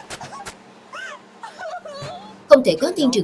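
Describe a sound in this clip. A young woman cries loudly.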